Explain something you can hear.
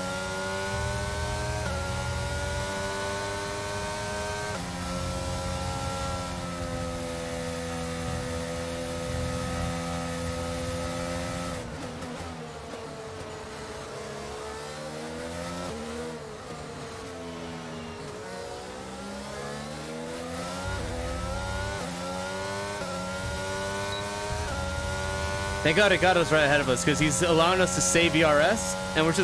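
A racing car engine whines at high revs, dropping in pitch with each gear change and rising again.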